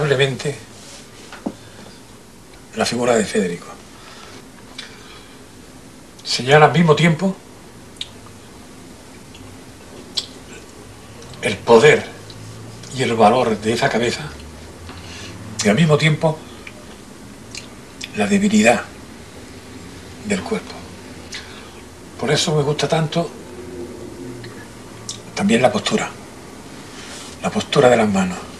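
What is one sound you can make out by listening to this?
An elderly man speaks calmly in short phrases with pauses.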